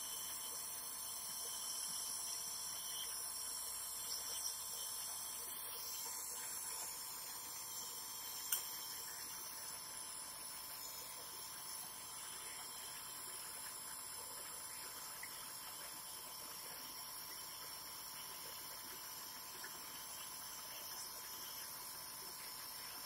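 A nebulizer compressor hums steadily close by.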